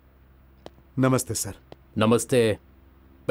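A man speaks firmly from across the room.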